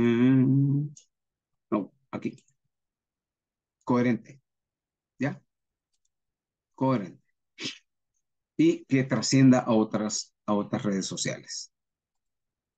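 A man speaks calmly in short phrases through a microphone.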